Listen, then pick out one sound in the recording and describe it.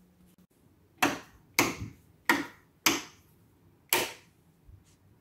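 Light switches click several times.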